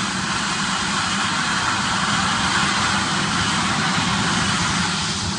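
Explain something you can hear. A helicopter's engine whines and its rotor thumps loudly nearby, outdoors.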